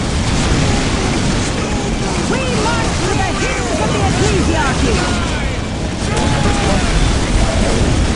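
Rifles fire in rapid crackling volleys.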